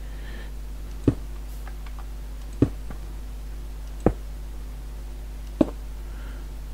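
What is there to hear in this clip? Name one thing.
Stone blocks knock softly as they are placed one by one.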